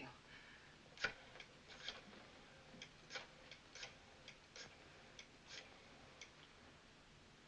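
A rotary telephone dial clicks and whirs.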